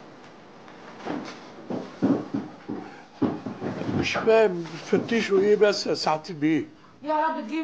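An elderly man speaks urgently, close by.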